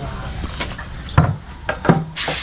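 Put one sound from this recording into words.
A metal milk can clanks as it is set down.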